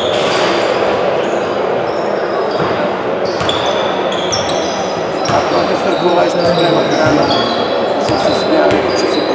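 A large crowd cheers loudly in a large echoing hall.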